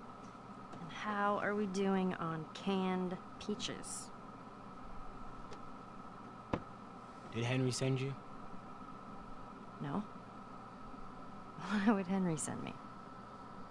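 A teenage girl speaks calmly at close range.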